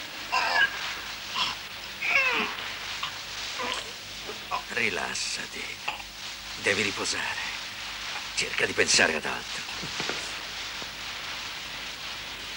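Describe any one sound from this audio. A man grunts and snarls through clenched teeth.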